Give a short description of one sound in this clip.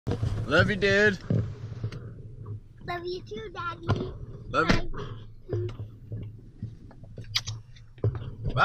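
A young boy talks playfully close by.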